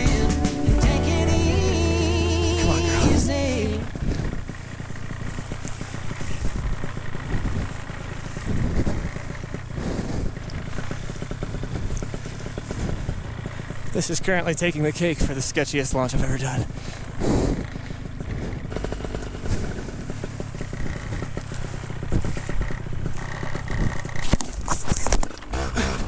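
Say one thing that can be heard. A paraglider wing flaps and rustles in the wind.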